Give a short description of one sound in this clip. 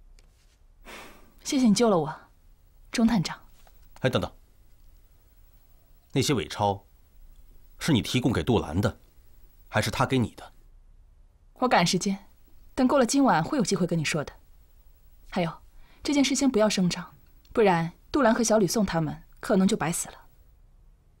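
A young woman speaks calmly and firmly.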